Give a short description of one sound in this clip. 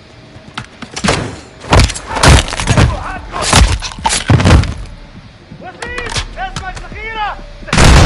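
Loud rifle shots ring out in bursts, with echoing booms.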